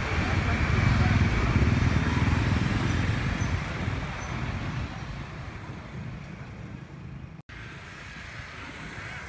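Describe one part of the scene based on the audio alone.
Motor scooters ride past.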